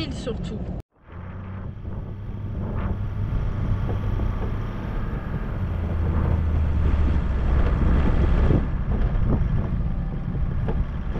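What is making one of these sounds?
A vehicle rumbles and bumps over a rough dirt track.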